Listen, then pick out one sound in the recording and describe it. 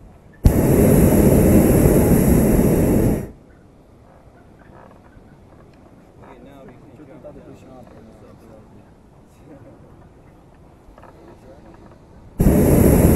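A hot-air balloon burner roars loudly in bursts overhead.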